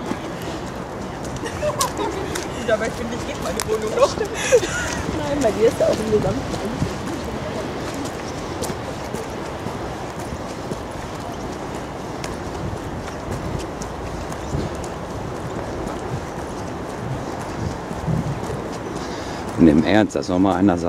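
Footsteps crunch softly on a wet paved path outdoors.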